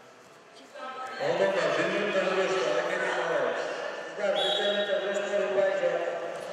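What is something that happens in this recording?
A man announces loudly through a loudspeaker.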